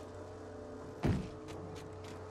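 A heavy thump sounds as someone lands from a jump.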